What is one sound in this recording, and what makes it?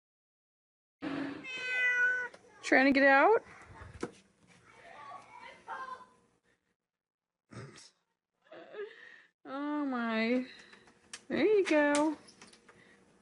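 A cat meows loudly and insistently, close by.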